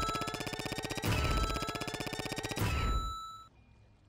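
A loud bright chime rings out twice.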